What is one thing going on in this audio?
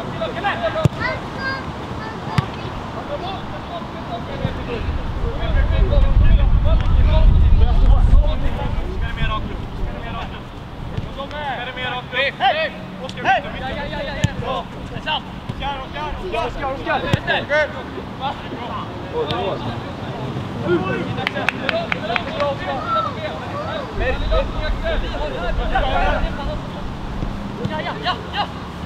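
Young men shout and call to each other across an open field, at a distance.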